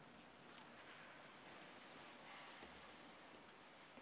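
Clothing rustles softly as a man kneels down close by.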